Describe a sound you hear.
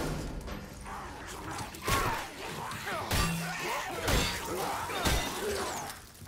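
A creature shrieks and snarls close by.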